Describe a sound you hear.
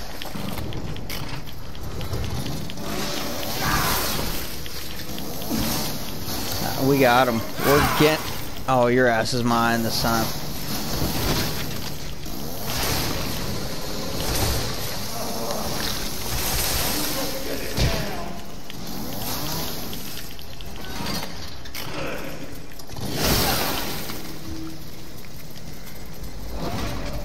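A chainsaw engine roars and revs.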